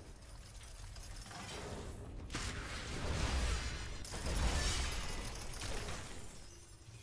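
A fiery explosion roars.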